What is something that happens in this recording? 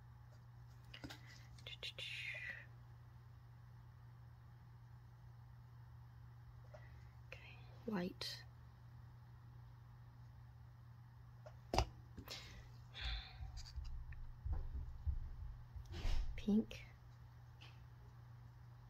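A wooden stick scrapes and taps against a plastic cup.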